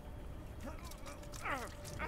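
Liquid splashes as it is poured from a bottle.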